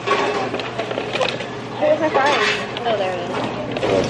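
A paper bag rustles.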